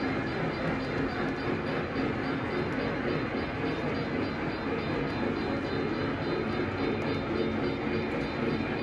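A model train rumbles steadily along its track, wheels clicking over rail joints.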